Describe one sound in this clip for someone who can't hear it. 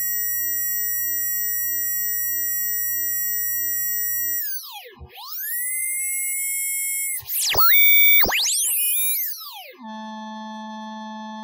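An electronic test tone hums steadily, then sweeps up and down in pitch, and settles again.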